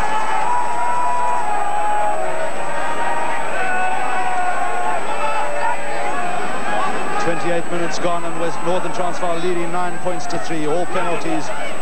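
A large stadium crowd cheers and murmurs loudly outdoors.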